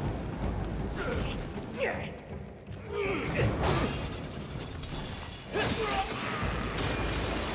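Flames burst and crackle.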